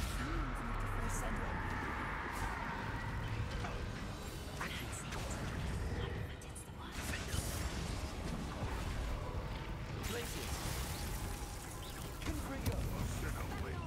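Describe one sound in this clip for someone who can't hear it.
Magic spells crackle and burst with fizzing sparks.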